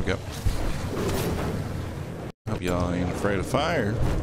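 A dragon breathes a roaring blast of fire.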